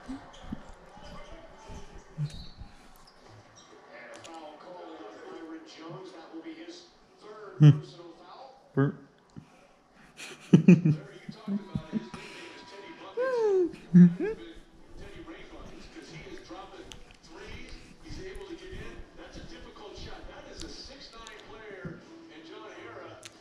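Voices talk from a television across the room.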